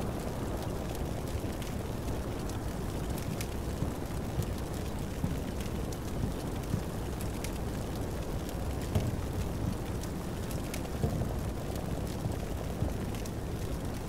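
Gunshots crack in scattered bursts.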